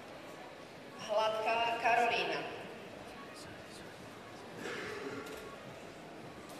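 A woman speaks briefly and calmly nearby.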